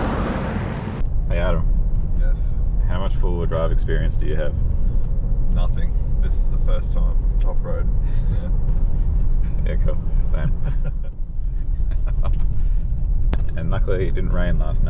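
A car engine rumbles low and steady from inside the cabin.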